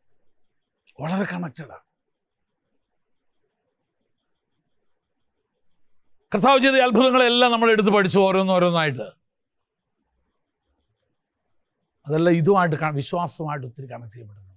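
An elderly man speaks with animation in bursts, through a microphone.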